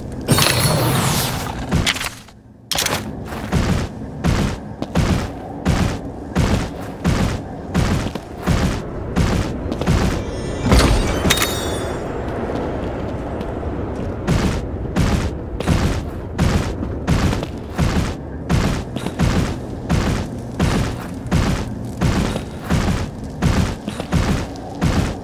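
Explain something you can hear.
A large creature's heavy footsteps thud on stone at a steady pace.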